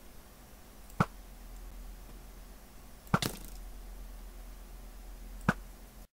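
A bowstring snaps sharply as arrows are loosed, a few times.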